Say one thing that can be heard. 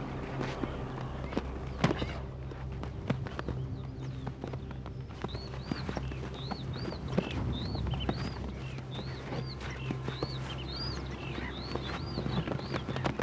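Horses' hooves thud and scuff on sandy ground.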